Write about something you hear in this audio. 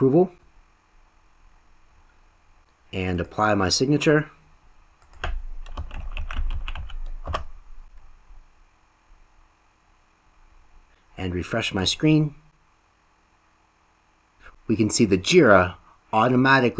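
A man speaks calmly into a nearby microphone, in short bursts.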